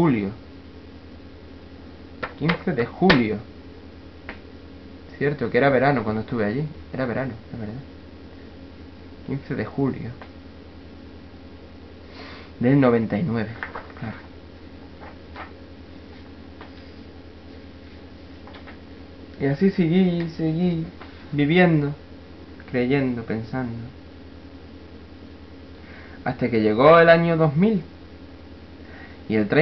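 A young man speaks calmly in short bursts close to a microphone, with long pauses.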